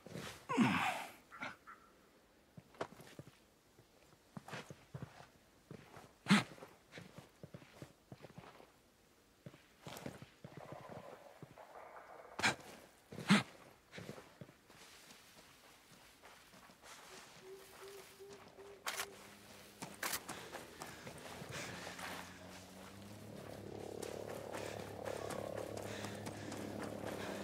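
Footsteps rustle through dense leafy plants.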